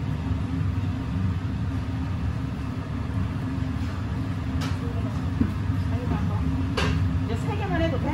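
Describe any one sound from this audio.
Metal bowls clink on a metal counter.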